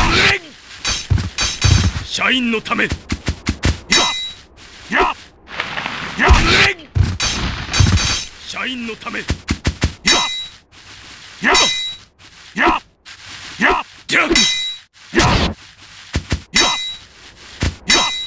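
Swords clash and clang in quick bursts.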